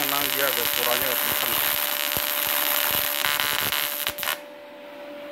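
An electric welding arc hisses and crackles steadily, then cuts off.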